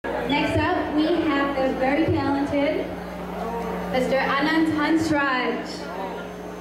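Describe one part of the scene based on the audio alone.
A young woman sings through a microphone in a large echoing hall.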